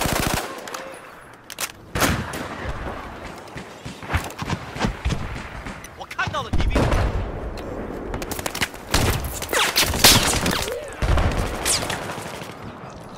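Gunshots crack in rapid bursts with echoing booms.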